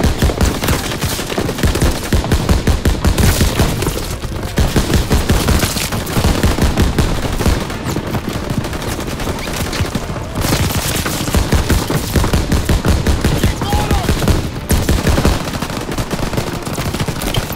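A machine gun fires long rapid bursts up close.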